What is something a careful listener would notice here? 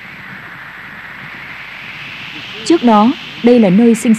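Wind blows hard, gusting across open ground.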